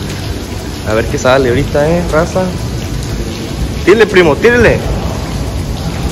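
Shallow water laps gently.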